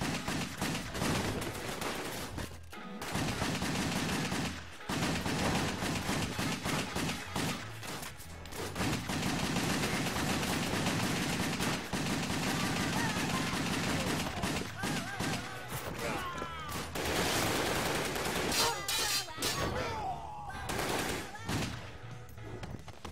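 Game music plays with a heavy beat.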